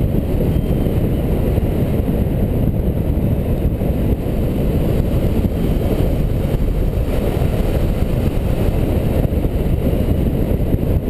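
Strong wind rushes and buffets loudly past the microphone in flight.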